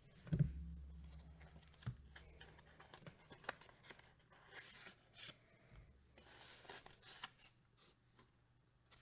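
A plastic card sleeve rustles and scrapes as it is pulled out of a paper wrapper.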